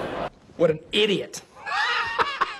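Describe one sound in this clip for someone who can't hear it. A man laughs loudly and wildly.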